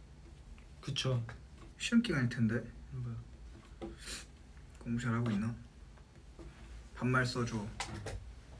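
Young men talk casually and close by, in short bursts.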